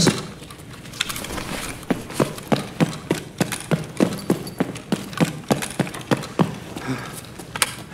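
Footsteps thud at a steady walking pace on a hard floor.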